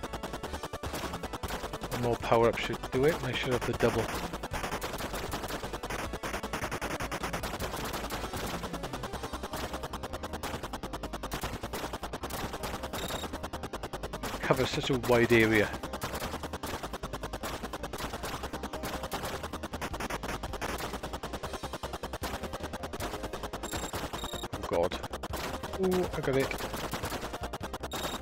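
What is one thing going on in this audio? Small electronic explosions burst now and then in a retro video game.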